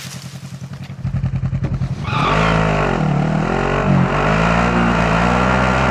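A truck engine rumbles and roars as the vehicle drives off.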